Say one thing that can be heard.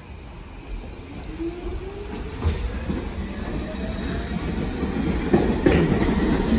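A subway train's motors whine, rising in pitch as the train pulls away.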